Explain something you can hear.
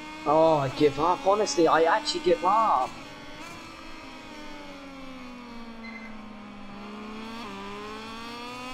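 A motorcycle engine whines loudly, its pitch slowly falling and then rising again with a gear change.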